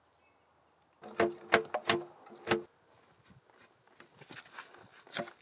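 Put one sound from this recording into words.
A chisel cuts and splits wood with sharp knocks and cracks.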